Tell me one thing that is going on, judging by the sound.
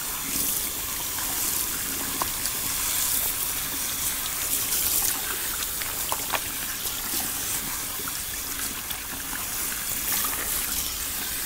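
Water sprays from a shower head and splashes into a sink.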